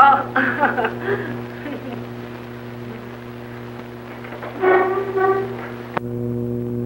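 A man speaks in a low, calm voice, with an old, muffled sound.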